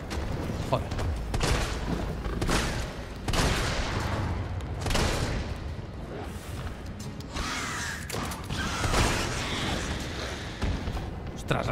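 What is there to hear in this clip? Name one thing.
A monstrous creature snarls and roars.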